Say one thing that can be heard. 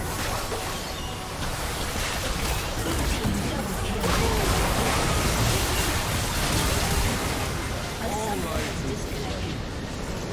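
Game spell effects crackle and blast in a busy fight.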